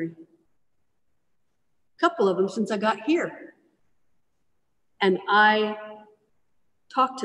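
A middle-aged woman speaks calmly through an online call.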